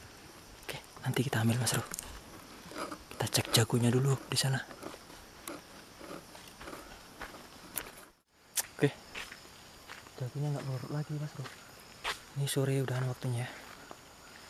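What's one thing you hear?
A man talks nearby in a low voice, in bursts.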